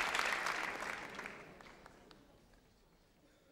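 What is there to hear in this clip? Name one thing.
An audience applauds loudly in a large hall and the applause fades away.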